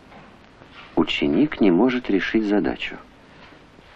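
A woman speaks briefly and clearly.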